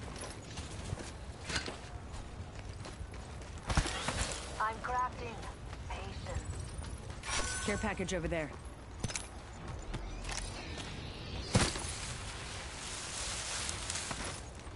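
Footsteps run quickly over ground and grass.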